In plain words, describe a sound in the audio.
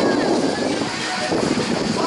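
Small waves splash against rocks.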